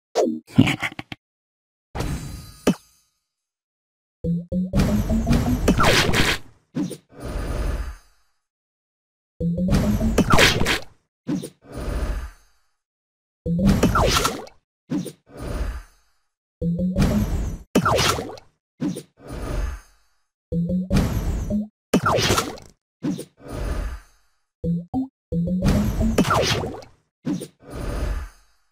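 Cartoon game effects whoosh and burst in short, repeated rising flourishes.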